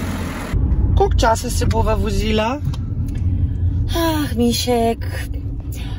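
A middle-aged woman talks with animation close by.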